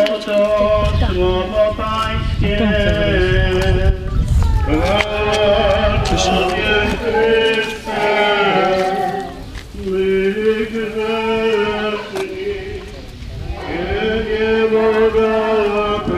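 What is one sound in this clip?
A crowd of men and women sings together outdoors in long, held notes.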